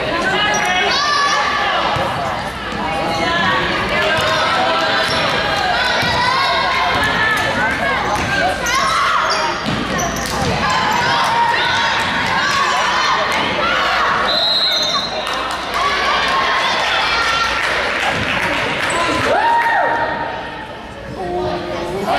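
A crowd of spectators talks and cheers loudly in an echoing gym.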